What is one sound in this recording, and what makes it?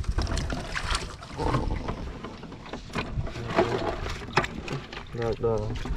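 Water splashes and sloshes in shallow water.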